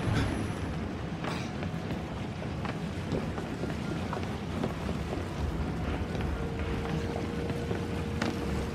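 Water laps steadily nearby.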